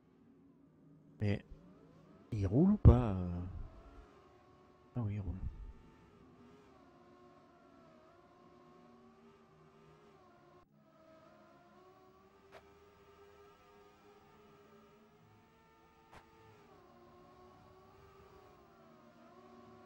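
A racing car engine whines steadily, rising and falling in pitch.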